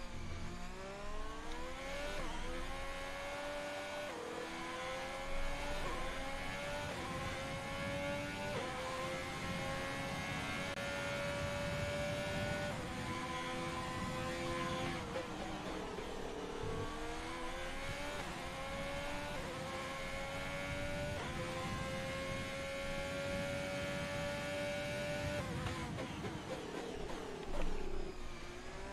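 A racing car engine screams at high revs, climbing in pitch and dropping with each gear change.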